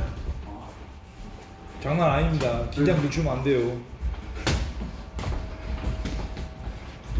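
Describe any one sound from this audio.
Sneakers shuffle and squeak on a canvas floor.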